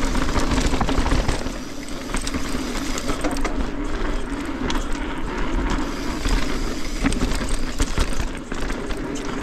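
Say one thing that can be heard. A bicycle frame rattles and clicks over bumps.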